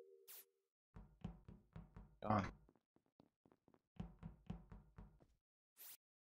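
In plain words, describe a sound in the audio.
Quick footsteps patter in a video game.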